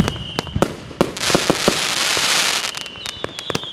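Fireworks crackle loudly in a dense hiss of sparks.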